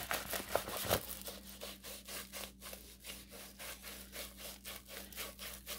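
Paper is rolled tightly with a soft rubbing.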